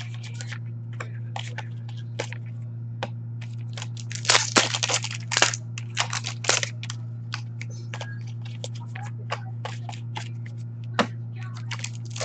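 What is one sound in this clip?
Trading cards tap down onto a hard counter.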